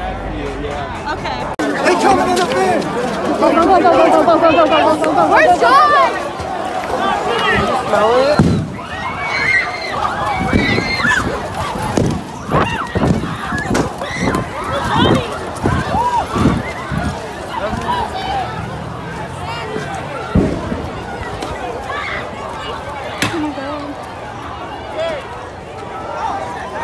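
A crowd of people shouts and yells outdoors.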